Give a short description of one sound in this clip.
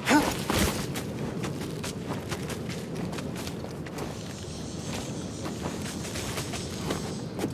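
Leaves rustle and scrape as someone climbs up through thick vines.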